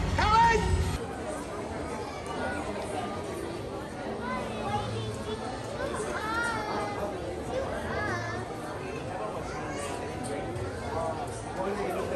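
Many people chatter indoors in a busy crowd.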